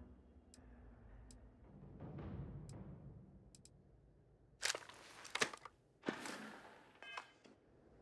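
Soft menu clicks sound a few times.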